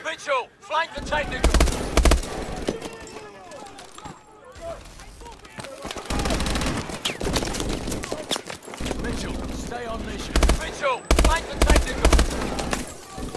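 Rifle shots fire in loud, rapid bursts.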